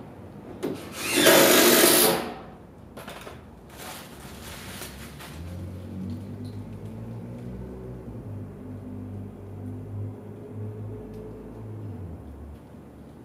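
A man handles metal tools with clinks and knocks.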